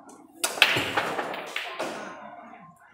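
Billiard balls click against each other as they roll.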